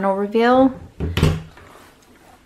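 A cabinet door clicks open.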